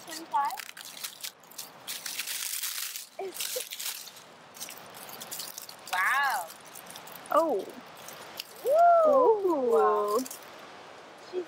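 Dry leaves rustle and crackle as a hand digs through them.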